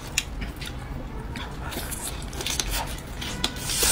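Roast meat tears apart with wet crackling.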